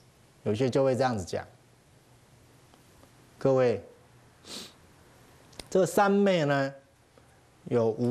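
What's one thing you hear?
A man speaks calmly into a microphone in short, slow phrases.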